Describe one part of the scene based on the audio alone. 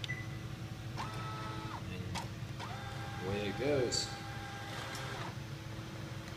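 A printer's motor whirs as it feeds paper through.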